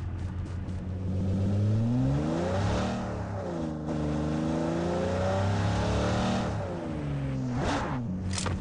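A car engine revs and roars, rising and falling in pitch.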